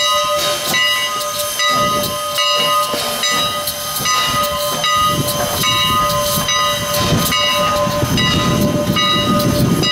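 A steam locomotive chugs with rhythmic puffs of steam close by.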